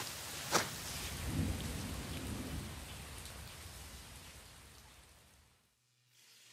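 Air rushes by during a fall and slowly fades.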